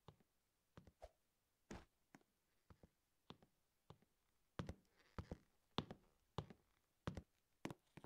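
A game character's steps tap quickly on a ladder.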